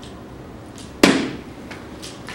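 A dart thuds into an electronic dartboard.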